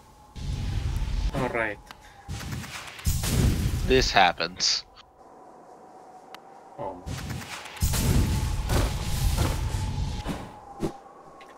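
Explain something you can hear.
Game sound effects whoosh and rumble.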